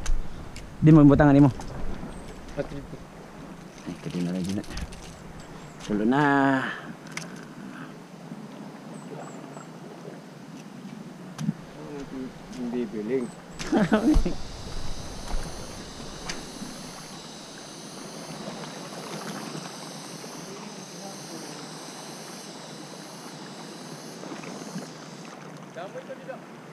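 Water laps gently against rocks.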